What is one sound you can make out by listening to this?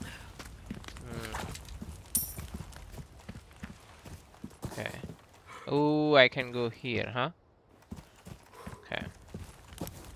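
Footsteps crunch on dirt and stone.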